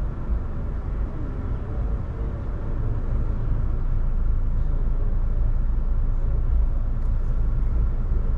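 A car engine idles with a low rumble, heard from inside the car.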